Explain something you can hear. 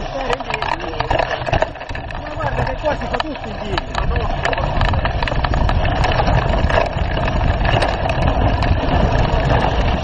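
Bicycle tyres roll and rattle over a bumpy dirt trail.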